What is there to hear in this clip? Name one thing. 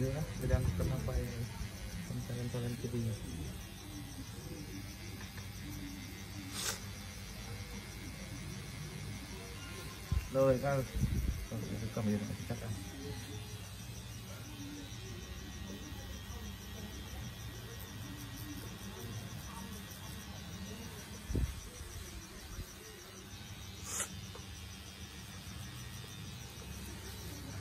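A tattoo machine buzzes steadily up close.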